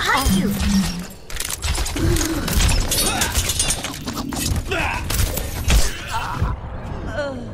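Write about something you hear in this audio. Rapid gunfire rattles and bangs.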